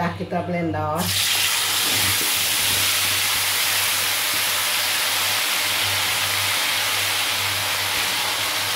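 Chili paste sizzles as it is poured into hot oil.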